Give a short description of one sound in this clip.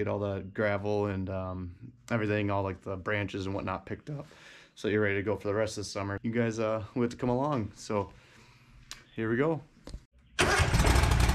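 A young man talks with animation, close to the microphone.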